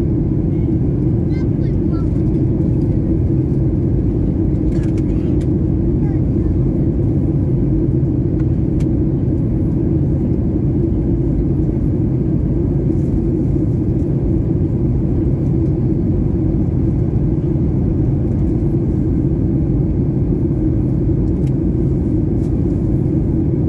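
A jet engine roars with a steady low rumble inside an airplane cabin.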